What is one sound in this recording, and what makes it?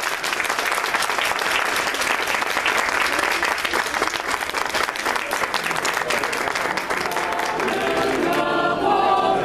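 A mixed choir of men and women sings together outdoors.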